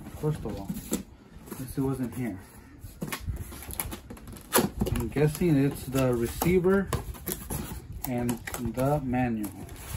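Cardboard boxes thump and rustle as they are lifted out.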